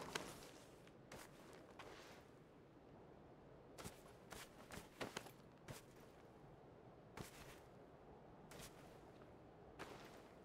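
A person crawls through dry grass with soft rustling steps.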